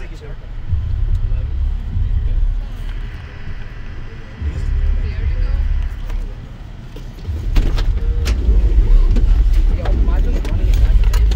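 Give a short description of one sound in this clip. A vehicle's engine rumbles low as it drives.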